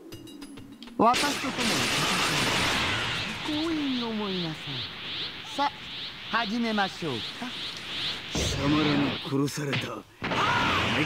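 An energy aura roars and crackles as power charges up.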